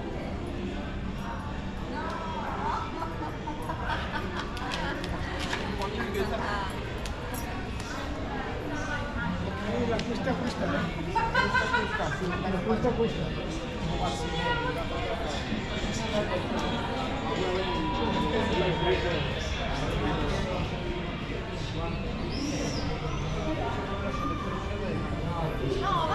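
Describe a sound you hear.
People chat in the distance, heard outdoors.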